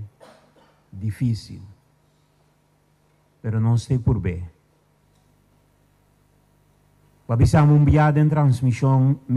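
A middle-aged man speaks slowly and formally into a microphone, with pauses between phrases.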